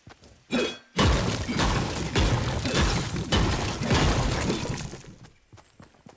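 A pickaxe strikes a brick wall again and again.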